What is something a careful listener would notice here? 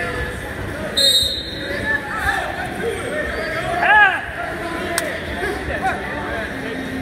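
Spectators shout and cheer loudly.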